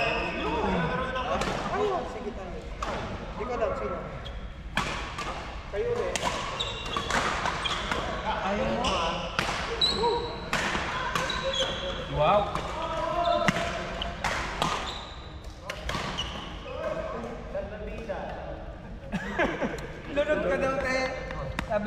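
Badminton rackets strike shuttlecocks with sharp pops.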